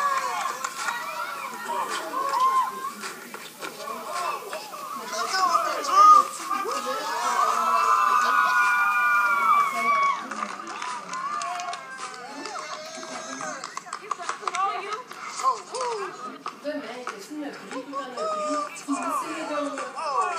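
A crowd of men shout and yell excitedly nearby.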